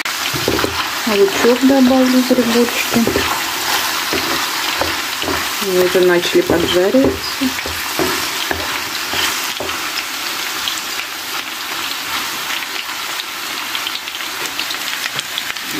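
A wooden spatula stirs mushrooms in a frying pan.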